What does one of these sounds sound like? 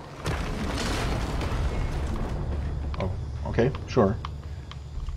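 Footsteps thud on wooden planks.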